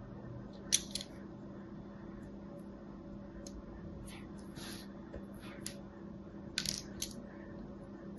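A metal tool scrapes and scratches across a bar of soap, close up.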